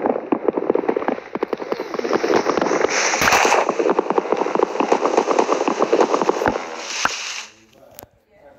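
Leaves rustle and crunch rapidly as blocks are broken.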